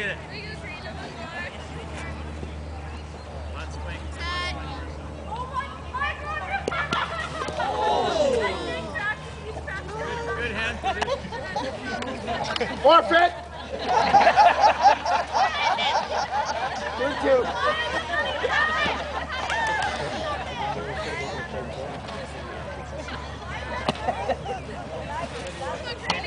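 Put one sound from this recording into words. Young girls shout and cheer from a distance outdoors.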